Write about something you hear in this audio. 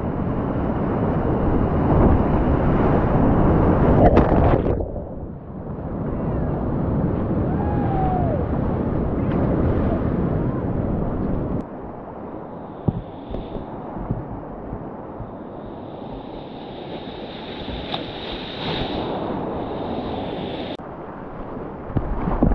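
Whitewater rapids roar loudly close by.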